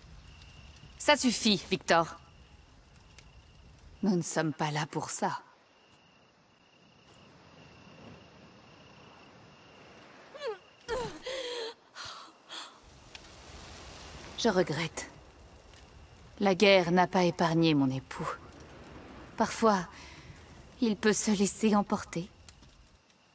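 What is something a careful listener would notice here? A woman speaks calmly and coolly.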